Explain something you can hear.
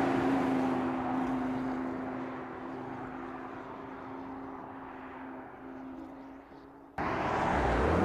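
A car engine hums as the car drives away and fades into the distance.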